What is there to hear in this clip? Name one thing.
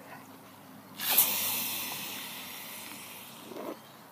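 A teenage boy sputters and spits out a mouthful of soda.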